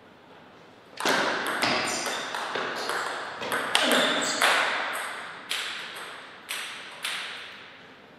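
A table tennis ball clicks sharply back and forth off paddles and the table in an echoing hall.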